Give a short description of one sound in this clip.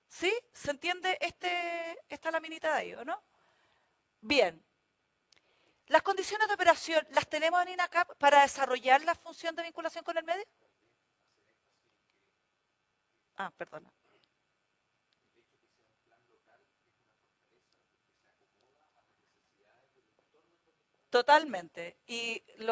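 A woman lectures through a microphone, pausing now and then.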